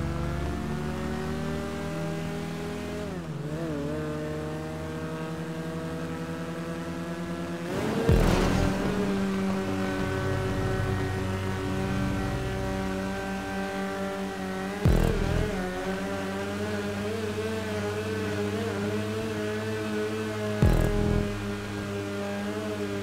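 A small car engine hums steadily and revs.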